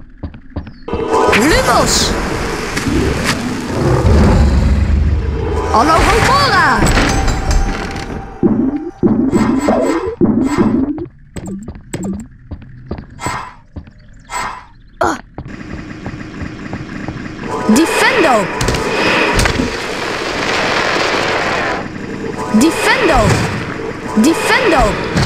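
A magic spell zaps and sparkles with warbling, swooping tones.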